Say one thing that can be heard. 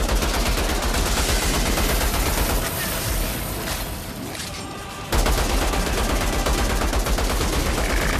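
Rapid gunfire rattles without a break.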